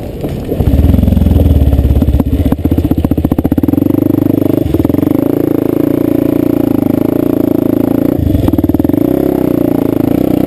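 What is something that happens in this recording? A dirt bike engine revs loudly up close, rising and falling.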